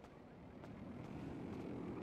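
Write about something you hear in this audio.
Footsteps walk across a hard floor.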